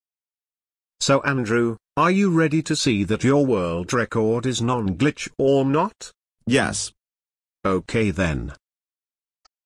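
A man speaks in a flat, synthetic voice over the phone.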